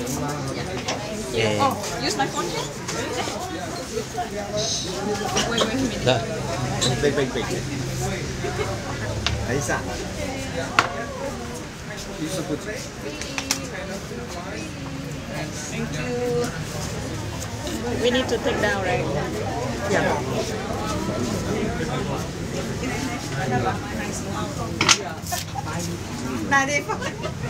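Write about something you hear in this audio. A crowd of adults and children chatter nearby.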